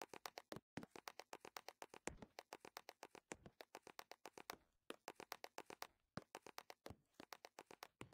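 Quick footsteps patter steadily on a hard floor.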